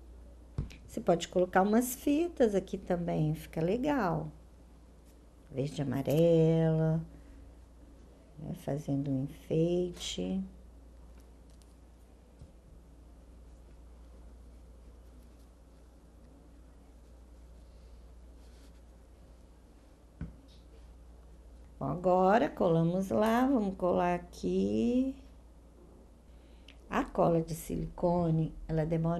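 A middle-aged woman speaks calmly and close to a microphone, with pauses.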